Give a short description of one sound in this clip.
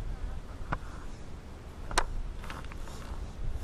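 A fishing reel clicks and whirs as line is reeled in.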